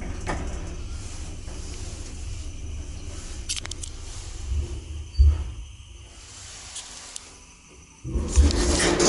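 An elevator hums as the car moves.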